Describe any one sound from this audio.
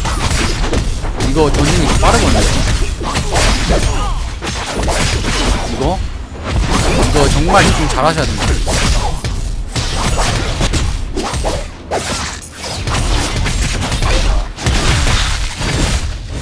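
Swords clash in quick succession.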